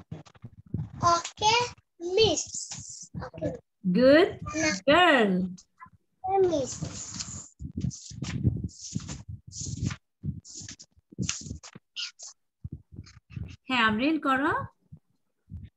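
A young child talks and exclaims in a high voice over an online call.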